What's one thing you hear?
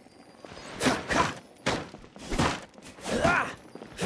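Wooden crates smash apart.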